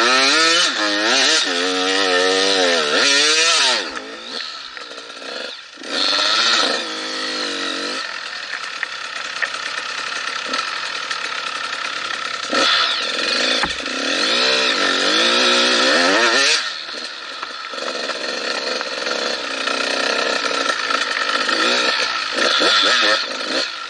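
A motorcycle engine revs up and down loudly, close by.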